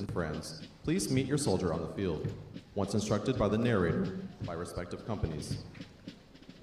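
A man announces loudly over a loudspeaker, echoing outdoors.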